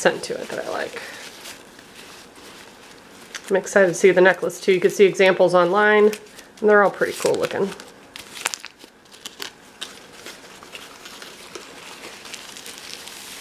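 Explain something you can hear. A paper towel rustles softly.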